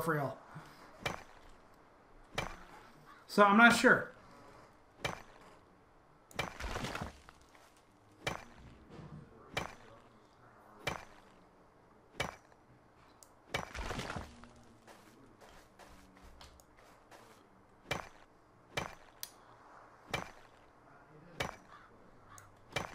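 A pickaxe strikes rock with sharp, regular knocks.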